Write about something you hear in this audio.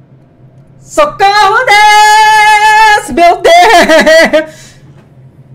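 A man shouts and sings loudly into a close microphone.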